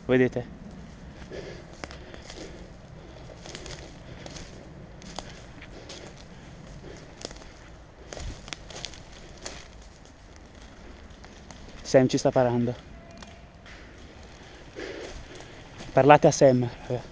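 Footsteps run and crunch over dry leaf litter.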